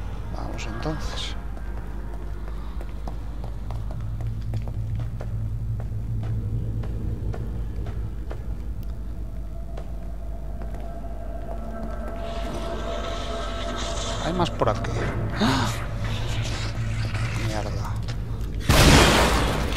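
Footsteps scuff and tap on a hard floor.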